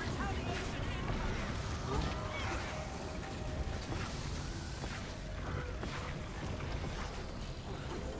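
Game spell effects crackle and whoosh with bursts of impact.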